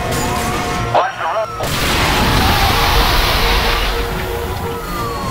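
Tyres burst and hiss loudly over a spike strip.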